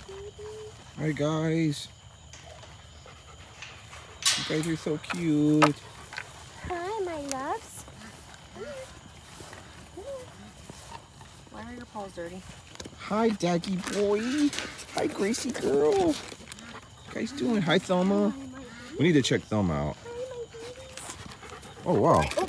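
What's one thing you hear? Dogs howl and whine close by.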